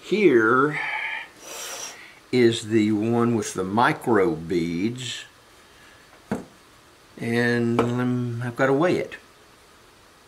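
A man talks calmly and close by, explaining.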